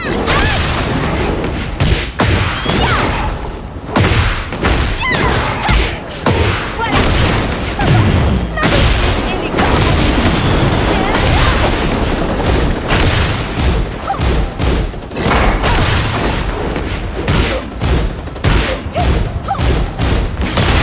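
Punches and kicks land with heavy thuds and cracks.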